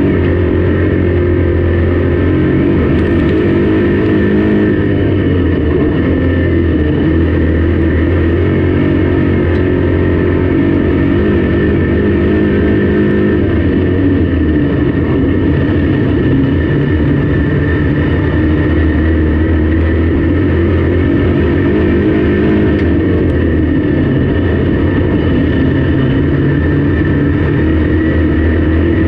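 A race car engine roars loudly and steadily up close.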